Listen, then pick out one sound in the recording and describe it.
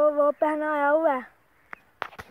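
A young man calls out loudly and close by.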